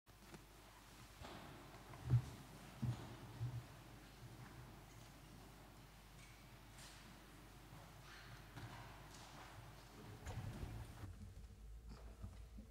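Men and women murmur quietly in a large echoing hall.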